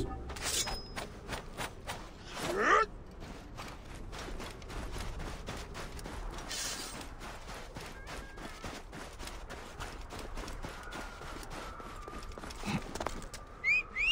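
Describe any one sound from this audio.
Footsteps run quickly over soft sand.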